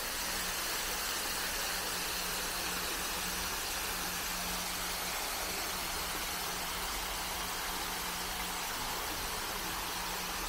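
Water splashes steadily in a fountain, growing louder as it comes closer.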